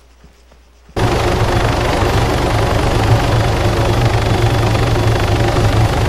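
A helicopter engine roars steadily with rotor noise.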